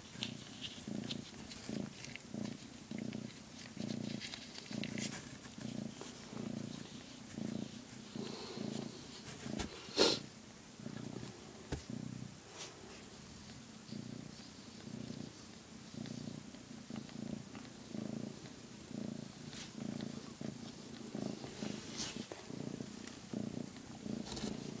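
A cat purrs steadily and closely, in even low pulses.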